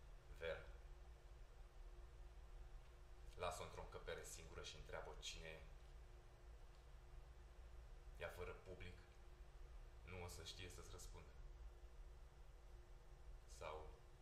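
A man speaks slowly and calmly, with long pauses.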